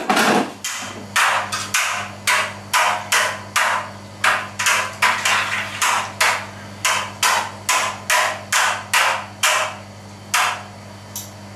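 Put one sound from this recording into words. A paddle sloshes rhythmically through liquid in a large metal pot.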